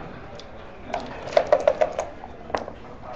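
Dice rattle in a shaker cup.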